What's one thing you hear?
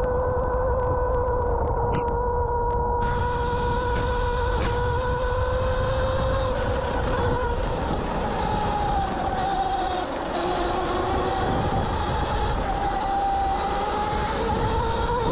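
Bicycle tyres rumble and crunch over a gravel track.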